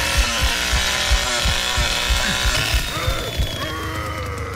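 A chainsaw engine sputters and revs loudly.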